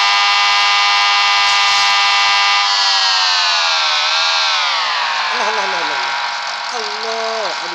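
A motorcycle engine whines at high revs, then its pitch falls as it slows.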